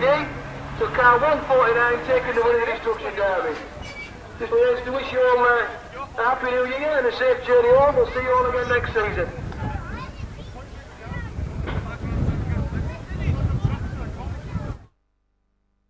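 Car engines roar and rev as cars race past.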